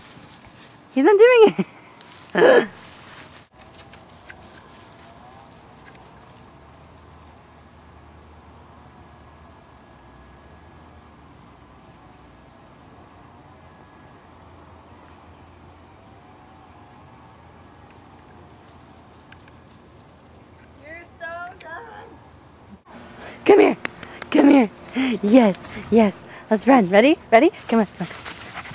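A puppy yaps and yelps in high, sharp bursts.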